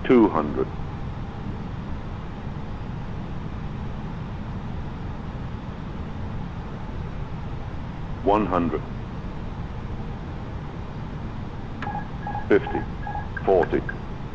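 A jet airliner's engines hum in a low, steady drone.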